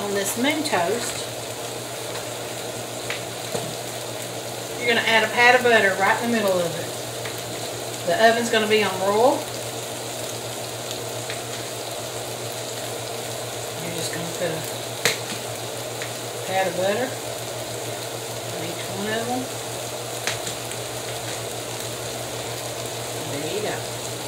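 Ham and eggs sizzle softly in a hot pan.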